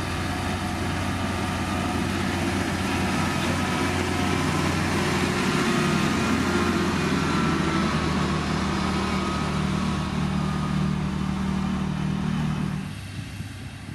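A road roller's diesel engine rumbles steadily as it approaches.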